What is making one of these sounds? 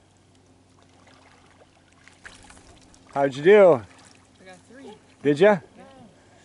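A paddle splashes softly in shallow water.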